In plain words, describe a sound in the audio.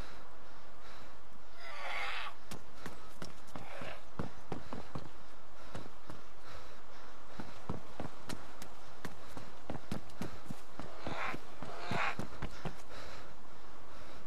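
Footsteps tap quickly on hard stairs and floor.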